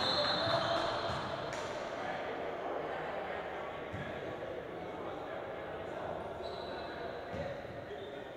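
A basketball bounces on a hardwood floor in a large echoing gym.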